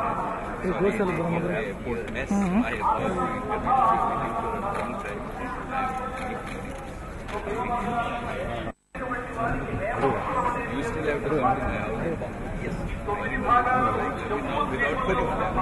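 An elderly man talks animatedly close by.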